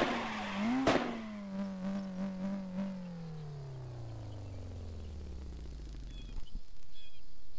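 A car engine winds down and falls quiet.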